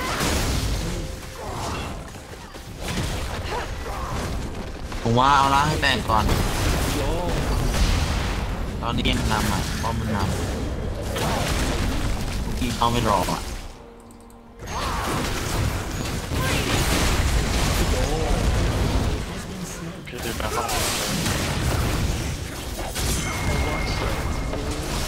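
Game spells crackle and blast as characters fight.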